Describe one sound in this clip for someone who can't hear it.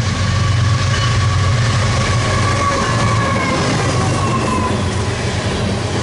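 Diesel locomotives rumble loudly as they pass close by.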